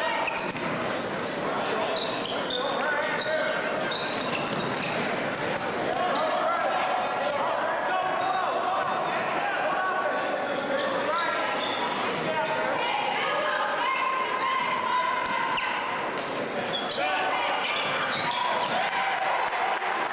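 A large crowd cheers and chatters in an echoing gym.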